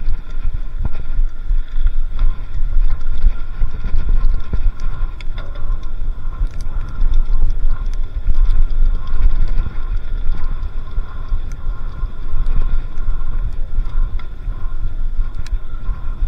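Wind rumbles loudly across a microphone outdoors.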